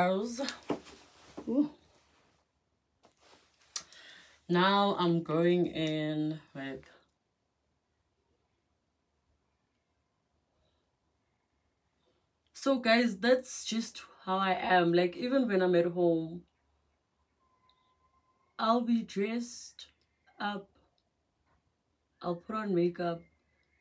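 A woman talks calmly and close by, in pauses.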